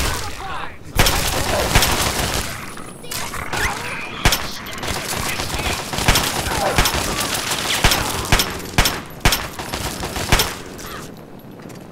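A pistol fires repeated shots in a room that echoes.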